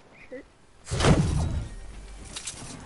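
A game character lands with a heavy thud.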